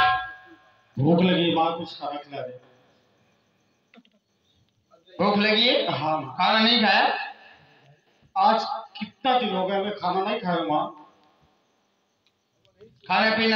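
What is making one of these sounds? A man speaks loudly through a microphone and loudspeakers.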